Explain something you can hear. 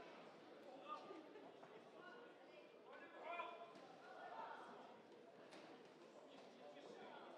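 Boxing gloves thud as punches land.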